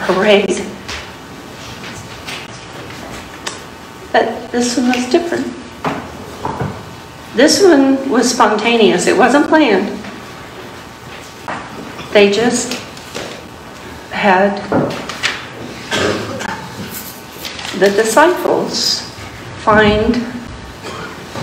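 An older woman speaks calmly and clearly to children, in a room with some echo.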